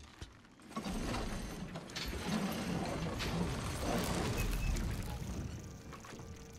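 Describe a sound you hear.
A heavy wooden bar creaks and scrapes as it is pulled loose.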